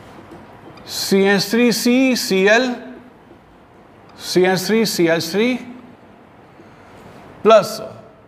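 An elderly man speaks calmly, as if teaching.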